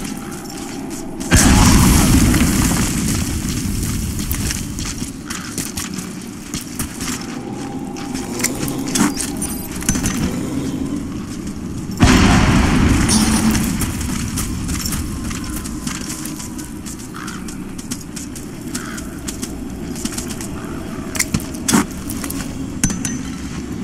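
Footsteps crunch through dry grass and gravel.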